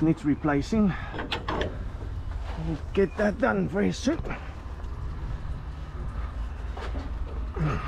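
A metal rod knocks against a hollow metal hopper.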